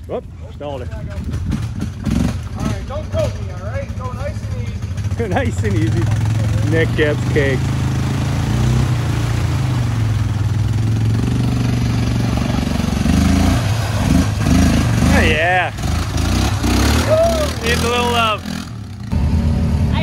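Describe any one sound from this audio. An all-terrain vehicle engine revs as it churns through deep mud.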